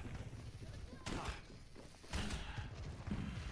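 Game guns fire in rapid bursts with crackling energy blasts.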